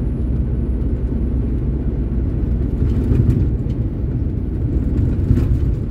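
A heavy truck passes close by in the other direction.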